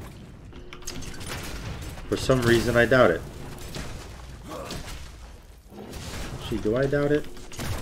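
Game fight sounds clash and burst.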